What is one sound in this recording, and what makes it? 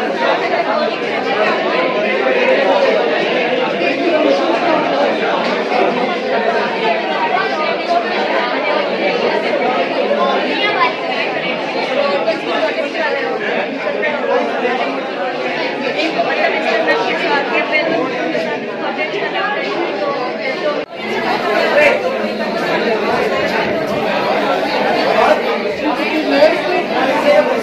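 A crowd of people chatter in a busy, echoing room.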